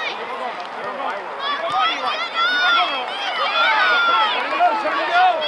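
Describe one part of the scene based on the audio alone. A crowd of spectators shouts and cheers with rising excitement outdoors.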